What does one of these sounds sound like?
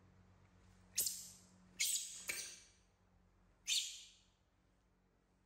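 A baby monkey's hands tap and scrape on a wicker tray.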